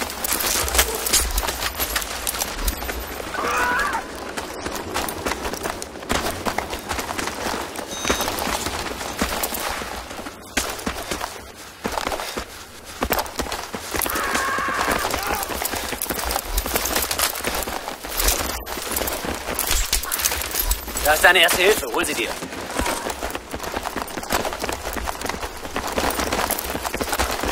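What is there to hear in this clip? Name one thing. Gunshots crack and echo nearby.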